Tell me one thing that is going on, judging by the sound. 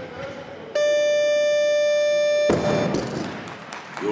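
A heavy barbell crashes onto a platform.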